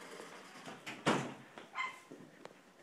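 A dog barks behind a glass door.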